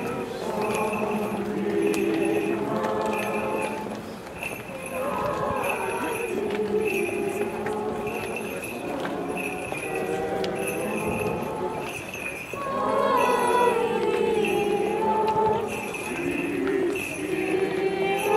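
A large crowd of men and women sings together outdoors.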